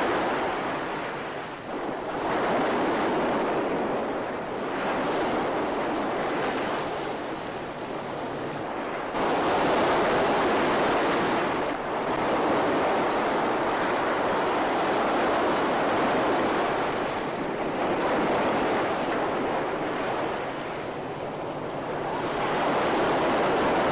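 Floodwater rushes and churns loudly.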